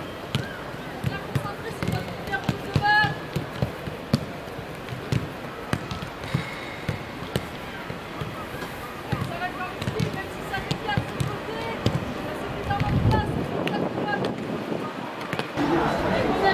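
Young women call out to each other outdoors.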